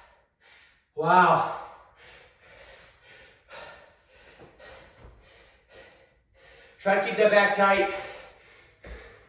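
A man breathes heavily and grunts nearby.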